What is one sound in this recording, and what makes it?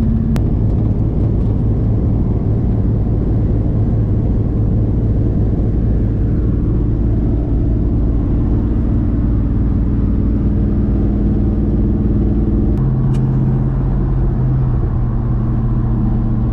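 Wind and road noise roar steadily inside a moving vehicle.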